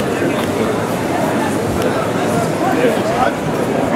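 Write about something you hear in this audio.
Two men talk nearby.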